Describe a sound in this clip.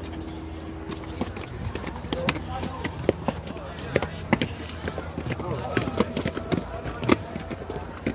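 Footsteps tap on concrete steps.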